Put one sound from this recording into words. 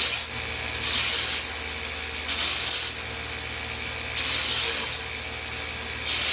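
A belt sander whirs steadily.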